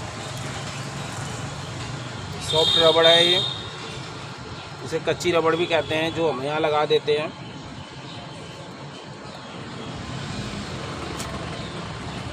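A rubber tyre rubs and bumps against a metal wheel rim.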